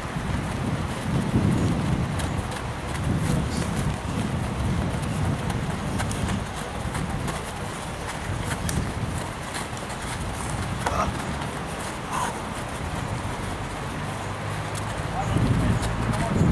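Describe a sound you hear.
Footsteps of running men thud on sandy ground.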